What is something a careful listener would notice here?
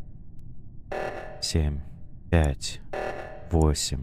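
Keypad buttons beep as they are pressed.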